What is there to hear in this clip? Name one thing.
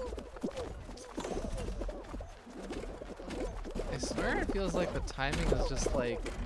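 Cartoonish game sound effects chime and bounce.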